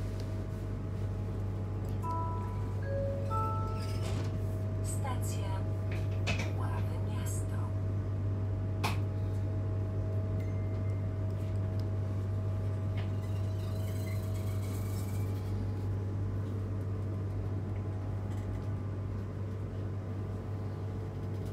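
A train rumbles steadily along the track, heard from inside a carriage.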